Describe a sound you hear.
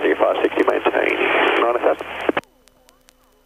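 An aircraft engine drones steadily with a propeller whirring.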